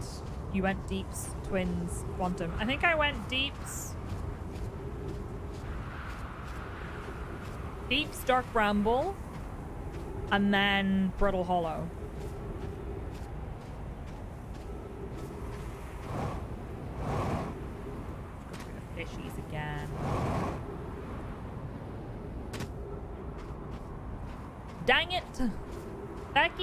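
A young woman talks with animation into a close microphone, now and then.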